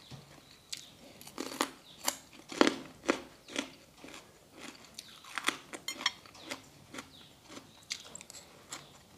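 A young woman chews and slurps food loudly and close up.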